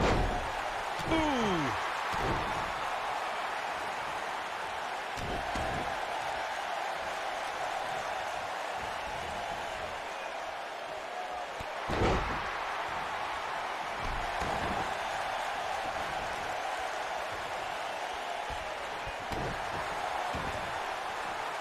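Heavy thuds land on a wrestling ring's mat.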